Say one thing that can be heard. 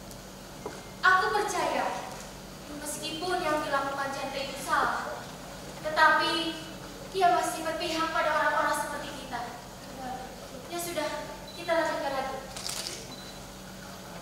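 Young women recite poetry dramatically in turns.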